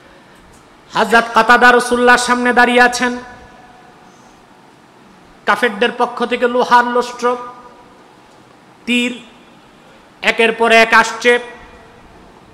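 A man chants in a long, melodic voice through a loudspeaker.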